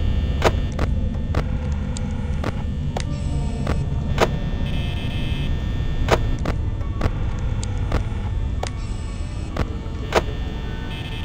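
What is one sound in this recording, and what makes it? Electronic clicks snap sharply, one after another.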